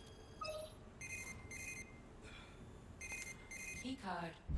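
Electronic keypad buttons beep in short tones as they are pressed.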